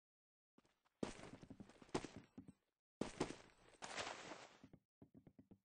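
A shotgun fires with loud booms.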